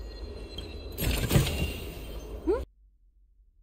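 A chest opens with a bright, shimmering chime.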